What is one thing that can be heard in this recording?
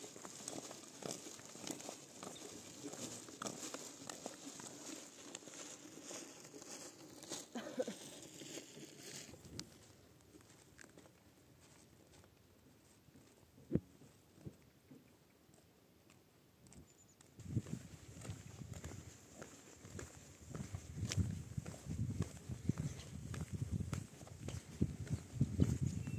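Footsteps crunch on a gravel road.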